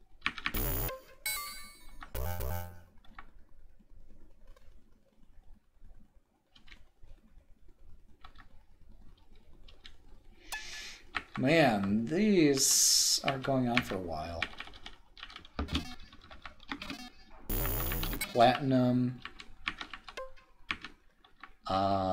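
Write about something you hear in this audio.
Electronic game blips and chirps sound in short bursts.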